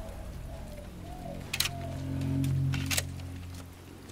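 Footsteps crunch on wet gravel.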